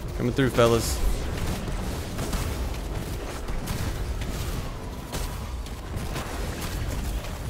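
Video game explosions and gunfire boom and crackle.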